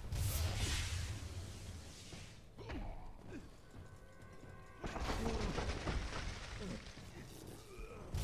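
Weapons clash with sharp hits.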